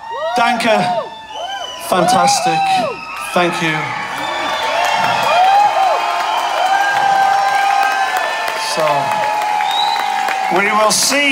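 A man sings into a microphone, heard through loud speakers.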